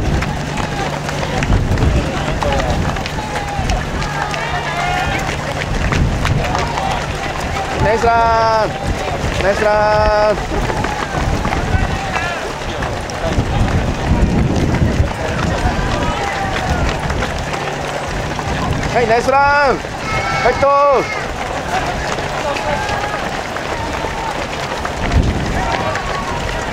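Many runners' footsteps patter on the road.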